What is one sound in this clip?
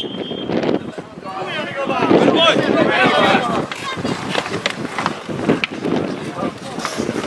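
Several young men shout and cheer together outdoors.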